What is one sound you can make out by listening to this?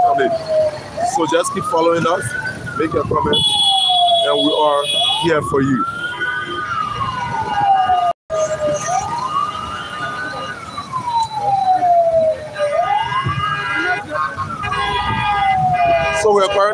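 Motorcycle and car engines rumble in busy traffic nearby.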